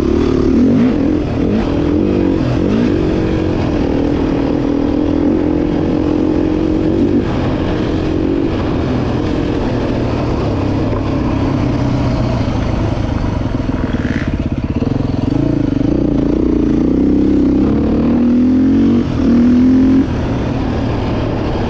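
Tyres crunch and rumble over a dirt trail.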